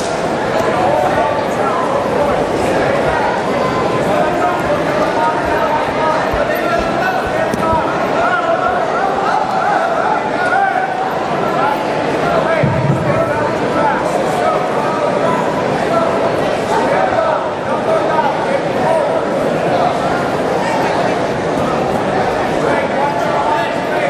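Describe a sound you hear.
A crowd in a large echoing hall chatters and calls out throughout.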